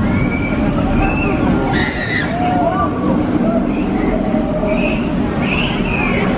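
A roller coaster train rumbles and roars along its track.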